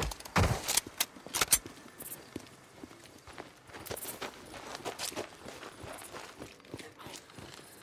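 Footsteps run over a road.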